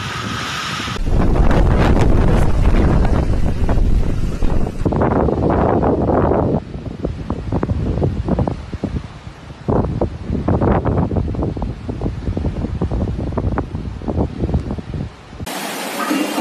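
Strong wind roars and gusts heavily outdoors.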